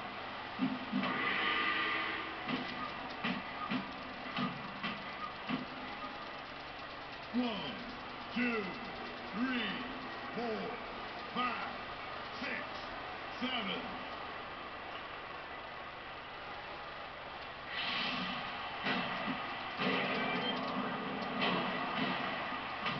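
A crowd cheers and roars through a television speaker.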